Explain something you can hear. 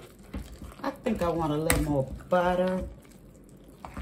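A masher squishes and thumps through soft potatoes in a metal pot.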